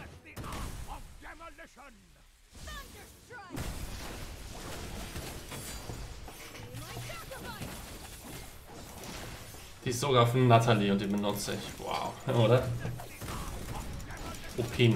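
Game battle effects clash and whoosh.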